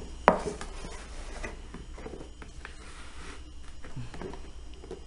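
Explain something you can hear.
A plastic tray lid knocks and rattles as hands shift it.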